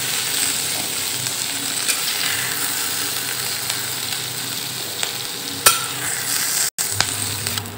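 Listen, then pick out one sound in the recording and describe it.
Vegetables sizzle and hiss in a hot pan.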